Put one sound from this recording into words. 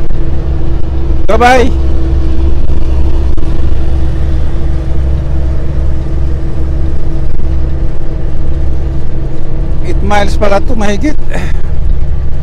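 A vehicle's engine rumbles steadily from inside the cab as it drives.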